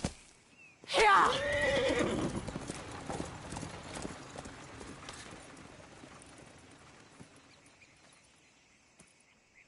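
A horse-drawn wagon rolls along a dirt road.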